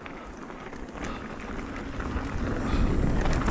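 Bicycle tyres rumble over a dirt trail.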